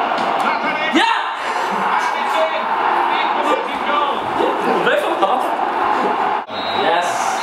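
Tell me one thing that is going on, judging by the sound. A young man laughs loudly close by.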